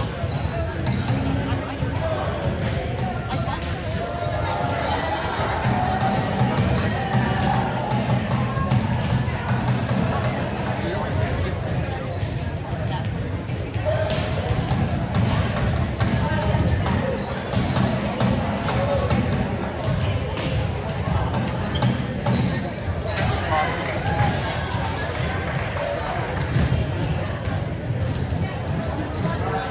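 A crowd of people chatter in a large echoing gym.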